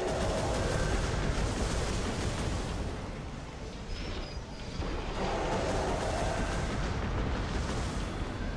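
A gun fires rapid bursts.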